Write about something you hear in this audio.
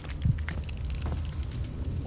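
A fire crackles in a stove.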